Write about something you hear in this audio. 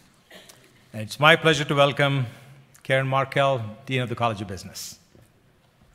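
A man speaks into a microphone to an audience.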